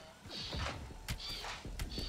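An energy weapon fires with buzzing zaps.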